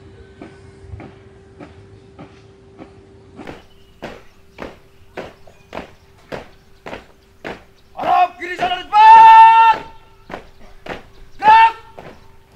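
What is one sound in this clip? Boots stamp in step as a group marches.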